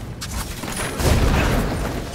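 An explosion booms loudly.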